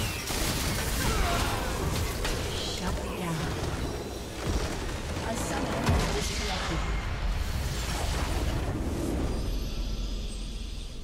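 Magic spells crackle, whoosh and zap in a noisy fight.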